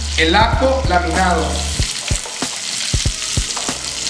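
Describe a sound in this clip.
Chopped garlic drops into a sizzling pan with soft pattering.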